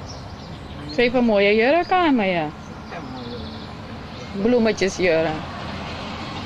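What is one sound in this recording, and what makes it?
An elderly woman speaks with animation nearby.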